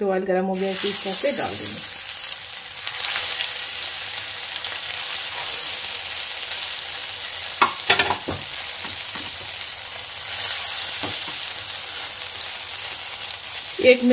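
Oil sizzles and crackles steadily in a hot pan.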